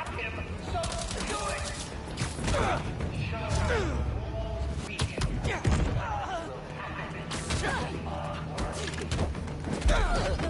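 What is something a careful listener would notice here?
Punches and kicks land with heavy thuds in a fast fight.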